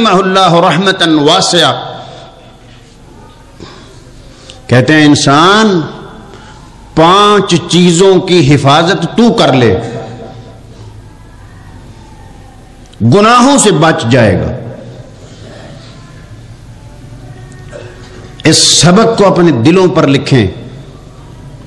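An elderly man speaks forcefully into a microphone in bursts, with pauses between phrases, heard through a loudspeaker.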